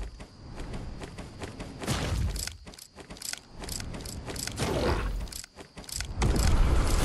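Footsteps splash quickly through shallow water.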